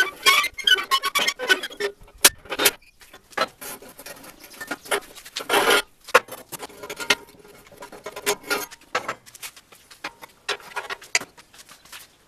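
Steel coil springs clank against a steel plate.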